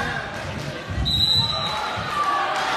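A referee's whistle blows sharply.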